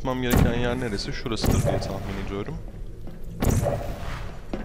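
A toy-like energy gun fires with a sharp zap.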